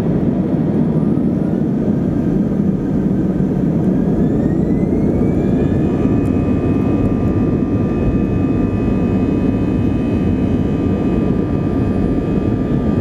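A jet engine's whine rises in pitch and then holds steady.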